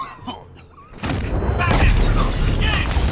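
Punches thump and bodies crash in a loud brawl.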